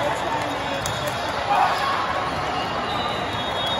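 A volleyball is struck with a thump.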